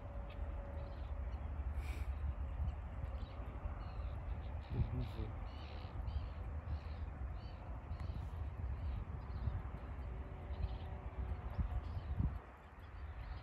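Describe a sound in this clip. Wind blows across open water outdoors.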